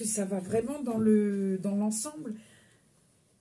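A middle-aged woman speaks close to the microphone with animation.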